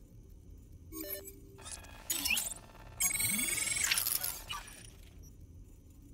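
Electronic chimes and whooshing tones sound briefly.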